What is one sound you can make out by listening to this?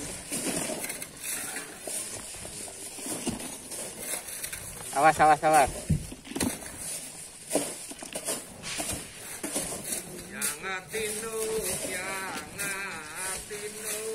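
A pick scrapes and digs into loose soil.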